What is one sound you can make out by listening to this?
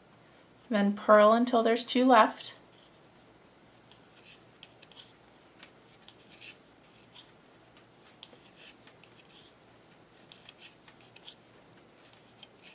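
Knitting needles click and tap softly.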